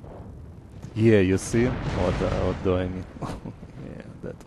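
Cannons boom and shells explode nearby.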